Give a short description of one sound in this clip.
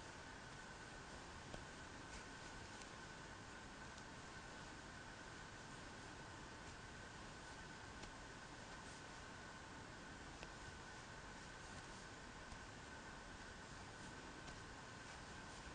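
A crochet hook softly rustles and clicks through yarn.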